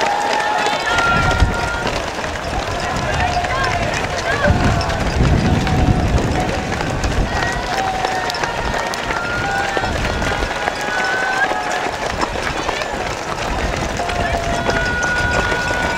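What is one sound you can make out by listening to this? Many runners' shoes patter on the road.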